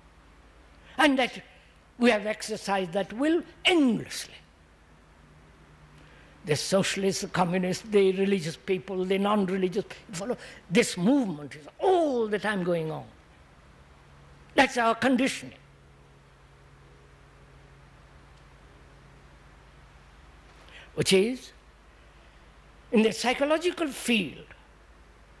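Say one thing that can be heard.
An elderly man speaks slowly and thoughtfully into a microphone, with long pauses.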